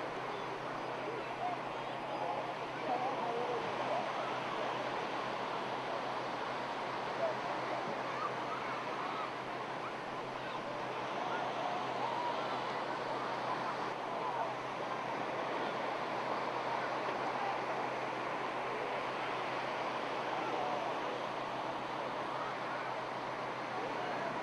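A crowd of men and women chatters in the distance outdoors.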